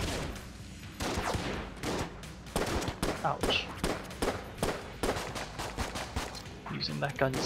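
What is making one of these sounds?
Small guns fire in quick bursts with electronic video game effects.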